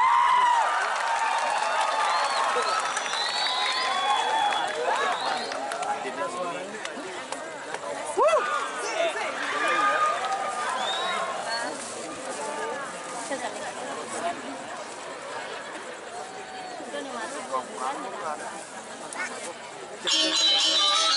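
A large group of women chant and sing together.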